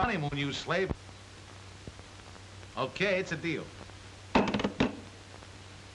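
A man talks calmly into a telephone.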